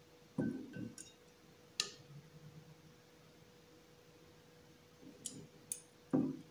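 Metal tongs clink against a glass dish.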